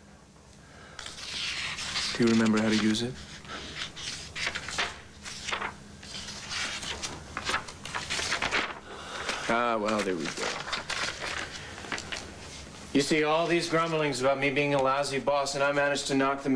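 An older man speaks calmly and deliberately, close by.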